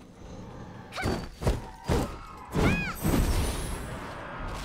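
Magic spells burst and whoosh in quick swings.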